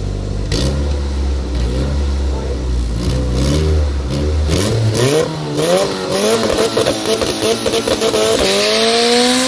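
A car engine idles roughly and revs in short bursts nearby.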